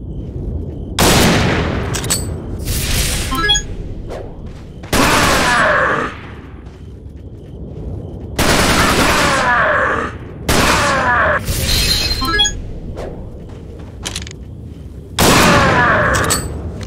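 A rifle fires loud, booming shots that echo away.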